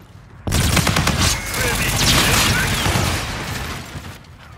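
Rapid gunfire rattles in loud bursts.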